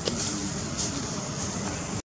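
A monkey walks over dry leaves.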